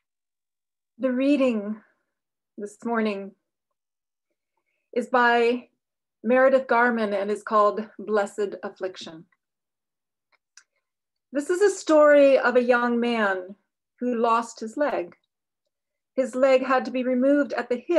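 An older woman speaks calmly over an online call.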